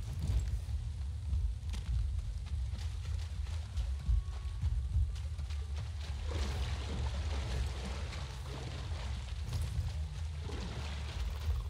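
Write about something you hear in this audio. Footsteps squelch through wet ground.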